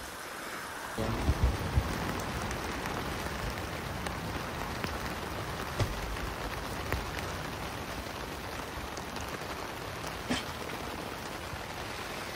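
Wind blows steadily against a tent.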